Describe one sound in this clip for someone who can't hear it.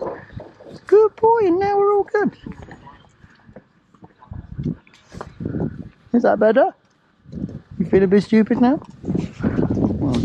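Horse hooves clop on a paved road.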